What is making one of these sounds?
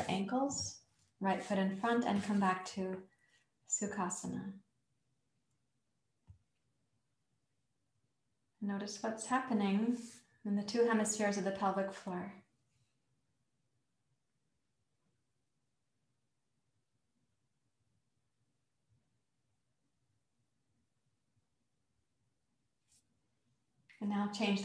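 A woman speaks calmly and slowly, close by, with pauses.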